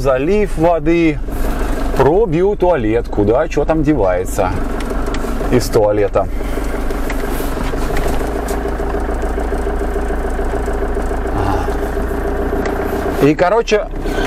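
A vehicle engine hums steadily inside a cabin.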